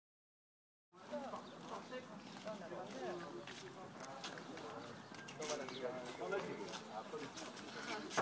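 Footsteps walk along a hard path.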